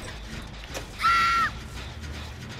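A man screams in fright nearby.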